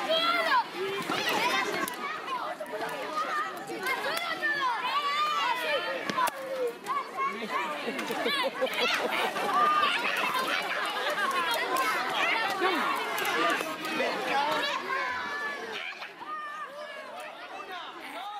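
A crowd of children chatters and shouts outdoors.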